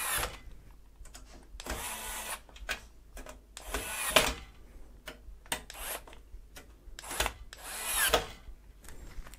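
A screwdriver turns screws with faint scraping clicks.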